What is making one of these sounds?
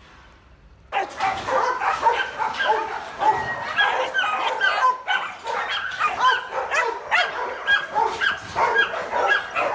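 Several puppies yelp and whine excitedly, close by.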